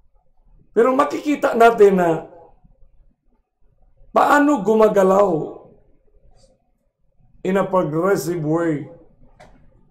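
A middle-aged man speaks calmly and slowly in short phrases, close to a microphone.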